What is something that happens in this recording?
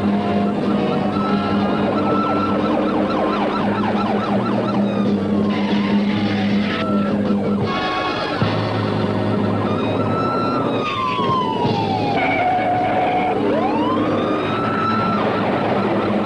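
A truck engine roars loudly at speed.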